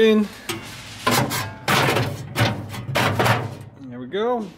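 Thin metal sheets rattle and clank as they are handled.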